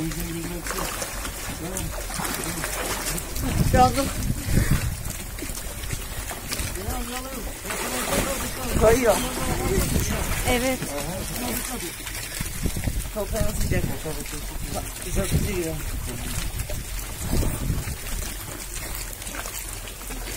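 Water rushes and splashes steadily nearby.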